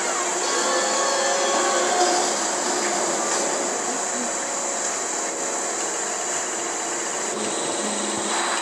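A cartoon soundtrack plays from a television speaker in a room.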